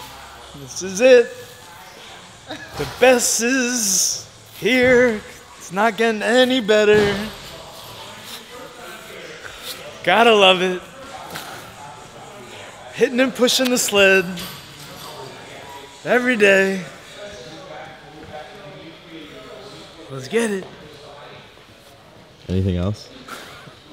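A young man talks cheerfully and close by, with pauses.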